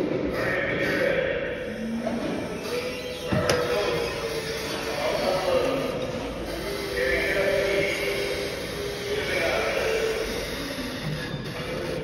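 An electric forklift motor whines, rising and falling in pitch.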